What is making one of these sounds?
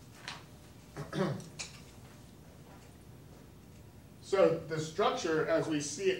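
A man speaks, explaining with pauses.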